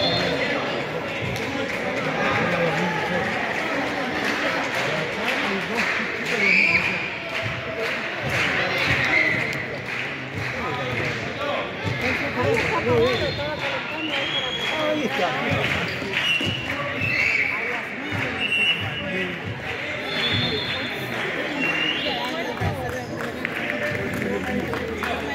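A ball thuds as children kick it.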